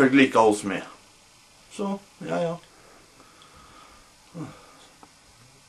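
A young man speaks close by in short bursts.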